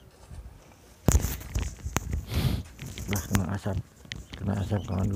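A small bird chirps sharply in a cage.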